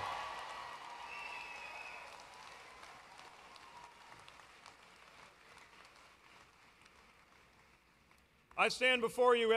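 A crowd cheers and applauds in a large hall, slowly fading.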